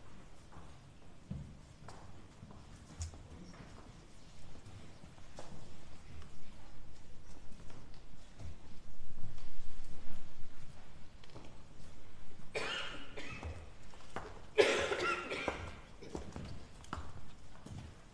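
Footsteps shuffle softly across a stone floor in a large echoing hall.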